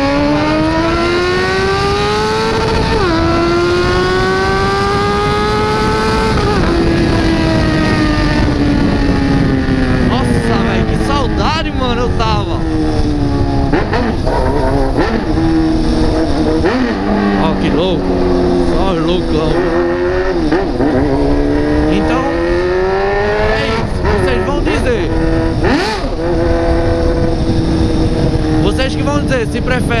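A motorcycle engine revs up and down, shifting gears as the bike rides along.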